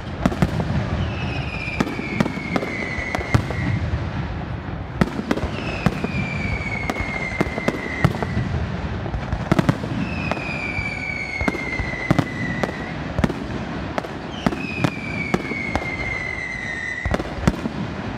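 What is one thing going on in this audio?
Firework rockets whistle with a falling pitch.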